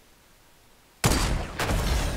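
A rifle shot cracks loudly.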